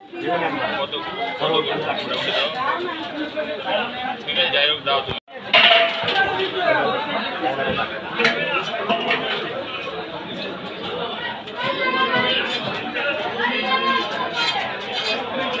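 A blade chops and scrapes through fish.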